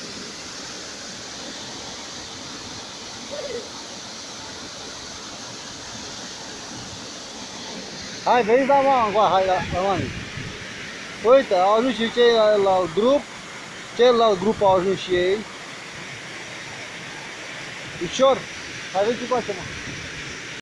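Water rushes steadily from a nearby waterfall.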